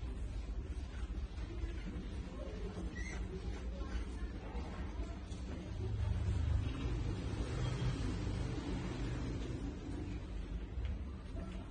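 Mice scrabble and scratch against glass.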